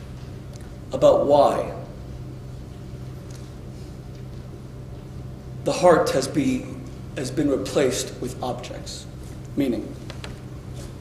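A man speaks with long pauses, with expression, in a room with some echo.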